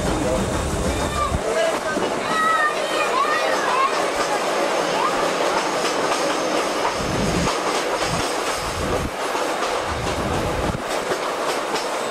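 Young children chatter and call out nearby.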